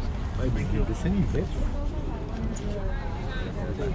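An elderly man talks with customers nearby.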